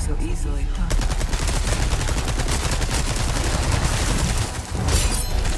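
A submachine gun fires rapid bursts.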